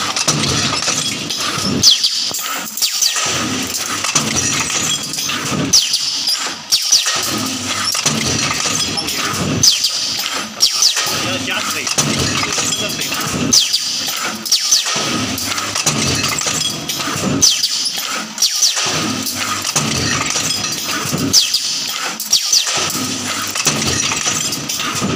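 A machine clanks and hisses in a steady repeating cycle.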